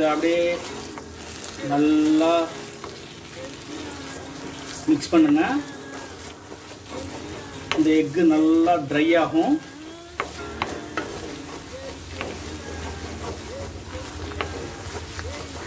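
A metal spatula scrapes against a wok, scrambling eggs.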